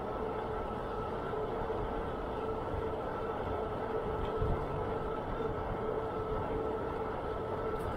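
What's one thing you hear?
Wind rushes past, buffeting steadily.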